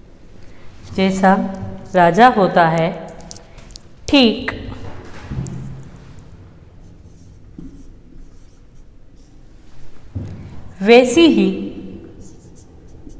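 A young woman speaks clearly and with animation, close to a microphone.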